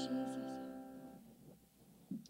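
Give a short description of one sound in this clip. A guitar chord rings out and fades.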